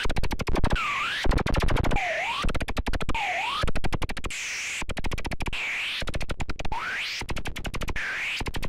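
A synthesizer plays fast, rhythmic electronic pulses that swoop up and down in pitch.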